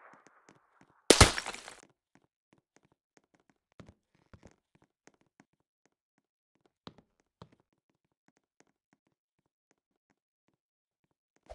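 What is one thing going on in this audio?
Phone keyboard keys tick softly as someone types.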